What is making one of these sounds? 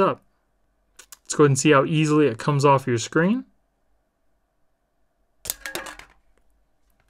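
Fingers tap and handle a phone.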